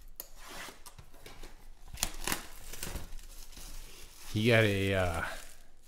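Cardboard packaging rustles in hands.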